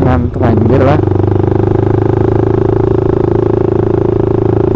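A motorcycle engine runs with a steady, low rumble.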